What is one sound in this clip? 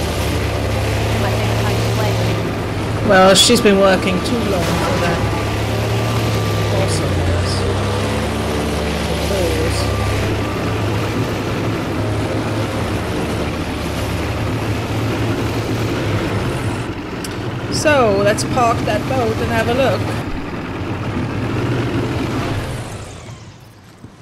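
A boat engine roars steadily as the boat speeds over water.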